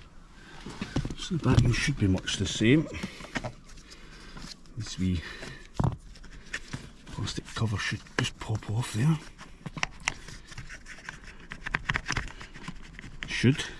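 Hands knock and rattle against a metal seat rail close by.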